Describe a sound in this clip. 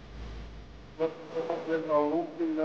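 A man reads out an oath into a microphone over a loudspeaker.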